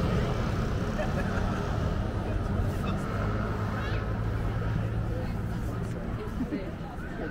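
A car engine hums as the car pulls away slowly.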